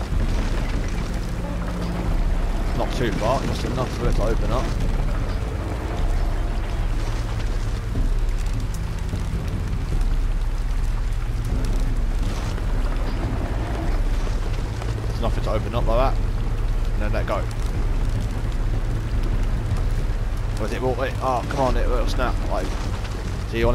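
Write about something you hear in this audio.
Water pours down steadily.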